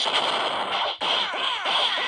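An explosion bursts loudly in a game.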